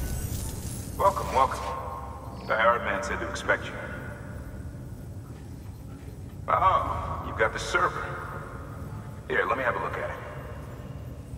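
A man speaks in a calm, friendly voice at close range.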